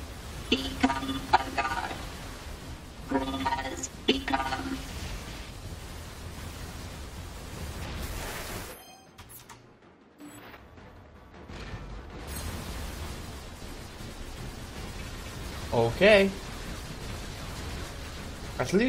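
Rapid gunfire and blasts sound in a video game.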